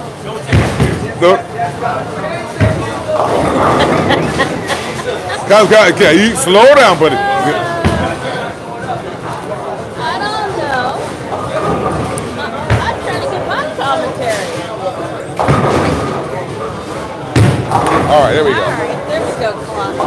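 A bowling ball thuds onto the lane and rolls away.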